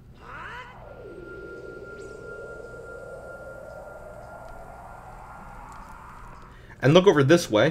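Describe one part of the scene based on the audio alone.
A magic spell charges with a rising, shimmering hum.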